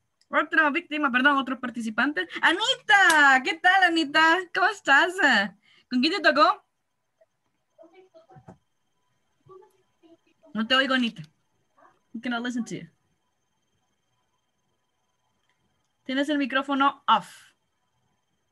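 A woman speaks with animation over an online call, in short bursts with pauses.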